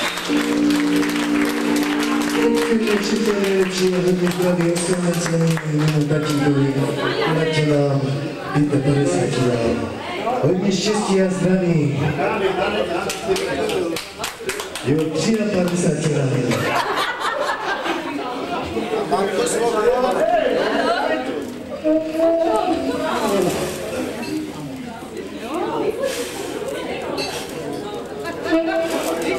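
A group of men and women sing together close by.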